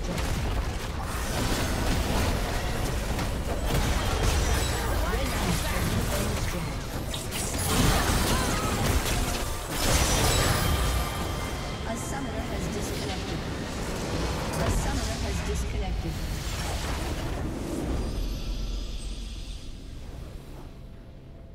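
Game battle sounds of spells blasting and weapons clashing crackle loudly.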